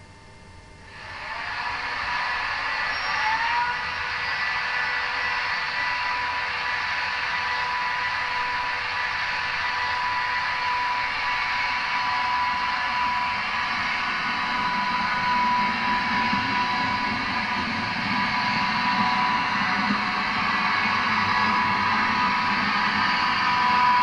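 A model diesel locomotive engine idles with a steady hum and whine.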